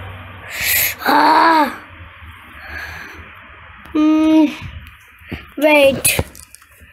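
A young child speaks loudly up close in short bursts.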